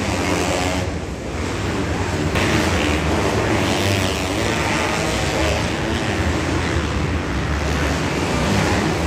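Dirt bike engines whine and rev loudly in a large echoing arena.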